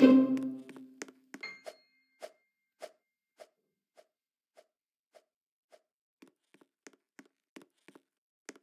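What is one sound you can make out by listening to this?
A game character's footsteps tap in a regular rhythm.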